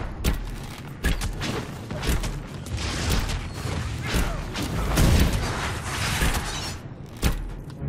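A staff whooshes through the air in swift strikes.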